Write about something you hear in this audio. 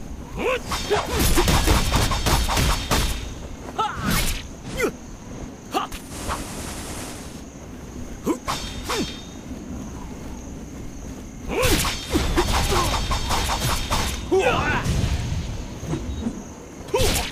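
Blades swing and strike in quick, sharp hits.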